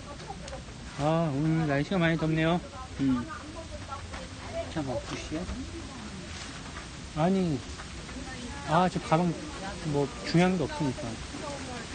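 A young man sings loudly in short bursts.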